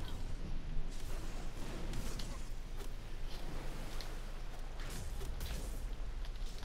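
Magic spell blasts whoosh and crackle in short bursts.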